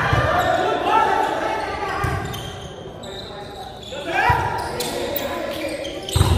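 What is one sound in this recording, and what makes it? Young men shout and call out to each other from across the court.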